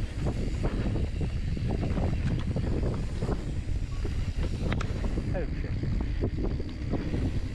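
Mountain bike tyres rumble and crunch over a dirt trail.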